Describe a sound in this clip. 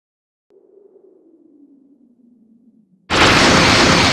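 A low whooshing hum drones softly and slowly falls in pitch.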